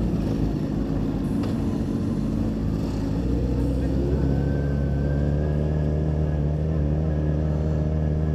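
A motorcycle engine rumbles close by and picks up speed.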